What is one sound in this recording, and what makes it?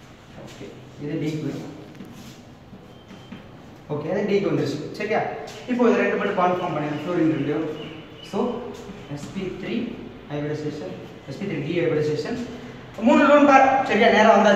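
A young man speaks clearly and calmly, as if explaining, in a room with some echo.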